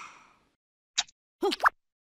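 A cartoon creature grunts and mumbles sleepily.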